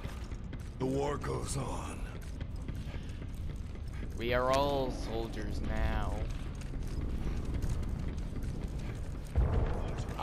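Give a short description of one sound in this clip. Footsteps clatter on hard ground.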